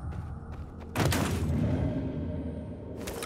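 A lid of a wooden box thumps open.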